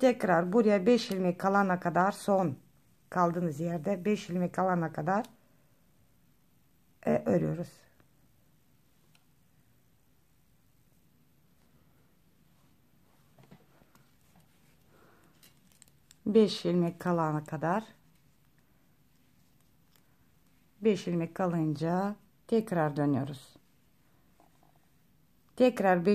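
Knitting needles click softly against each other.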